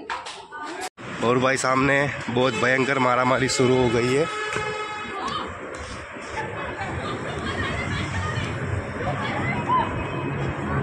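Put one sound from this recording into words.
A crowd chatters outdoors at night.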